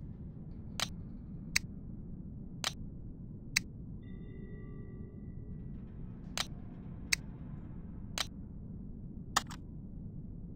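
Short, sharp interface clicks sound again and again.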